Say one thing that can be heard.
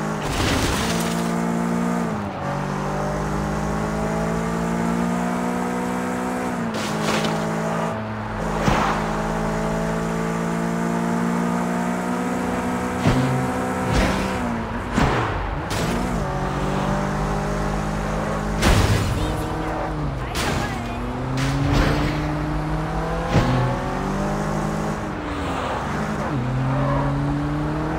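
A car engine hums and revs up and down as gears shift.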